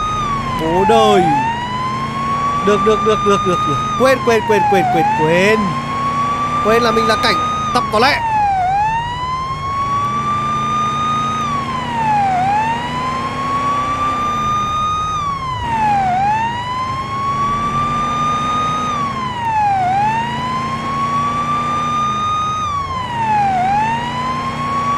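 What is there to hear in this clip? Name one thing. A police siren wails steadily, rising and falling over and over.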